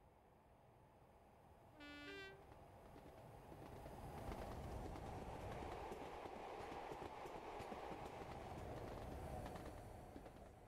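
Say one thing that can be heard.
A diesel locomotive engine rumbles and grows louder as it approaches.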